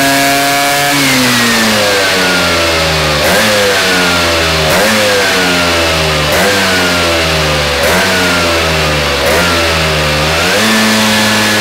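A scooter engine roars loudly, its pitch rising and dropping in repeated bursts.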